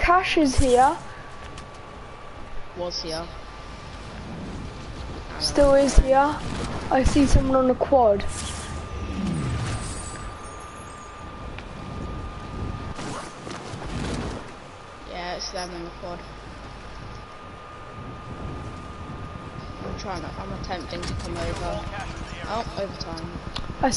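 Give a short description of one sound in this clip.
Wind rushes steadily past during a parachute descent.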